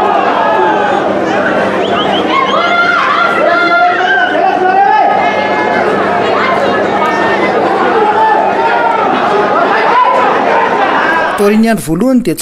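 A large crowd cheers and sings loudly across an open stadium.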